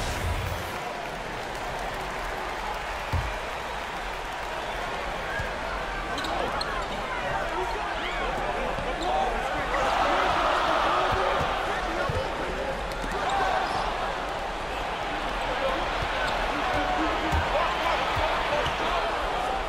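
A large arena crowd murmurs and cheers throughout.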